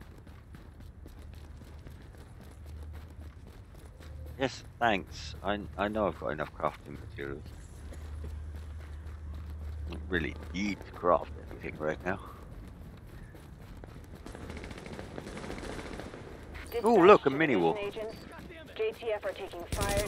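Footsteps crunch on snow at a steady run.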